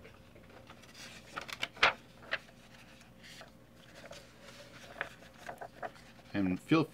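Paper pages rustle and flap as a book's pages are turned by hand.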